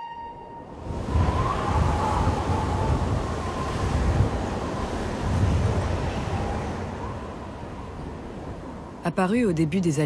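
Wind blows in low gusts across an open hillside.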